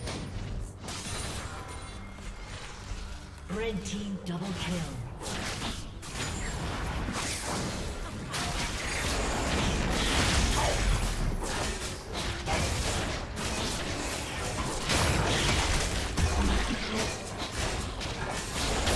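Game spell effects whoosh and clash in a busy fight.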